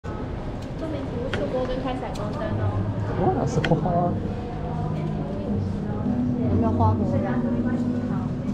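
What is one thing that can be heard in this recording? Young women talk quietly nearby.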